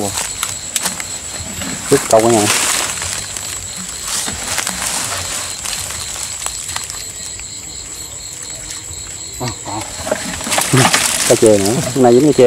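Leaves and stems rustle as a man pushes through plants.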